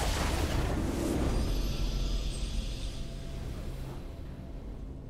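A triumphant game fanfare rings out and fades away.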